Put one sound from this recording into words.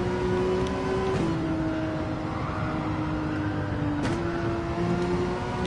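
A racing car engine roars steadily, its pitch dropping and jumping as gears change.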